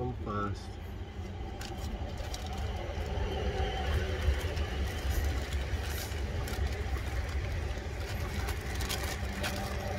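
Magazine pages rustle and crinkle in a man's hands.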